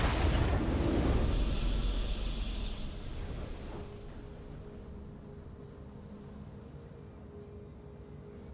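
A victory fanfare swells and fades.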